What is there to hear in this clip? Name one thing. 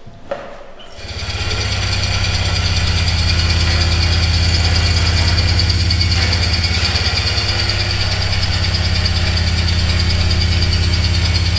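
A deep, steady hum drones on.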